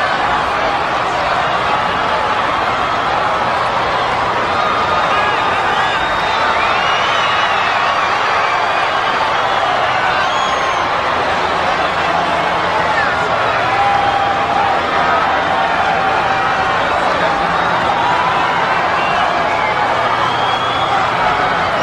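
A huge stadium crowd roars and cheers steadily.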